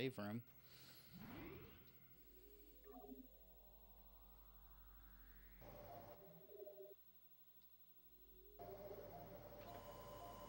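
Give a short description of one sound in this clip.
A video game plays soft electronic tones and a rising whoosh.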